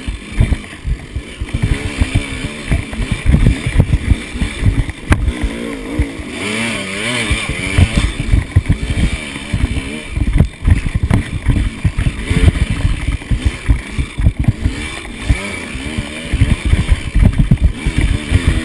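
A two-stroke dirt bike engine revs hard and sputters on a rocky trail.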